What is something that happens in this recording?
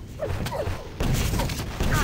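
A rocket explodes with a loud boom.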